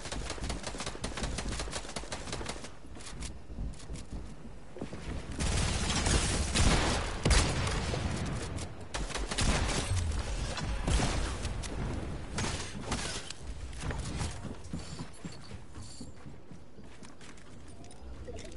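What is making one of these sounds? Building pieces snap into place with quick clacks.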